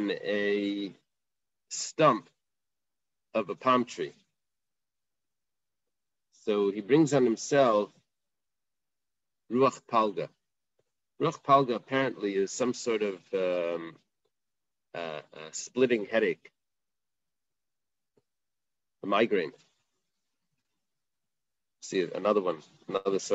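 A man speaks calmly in short phrases over an online call, with pauses between them.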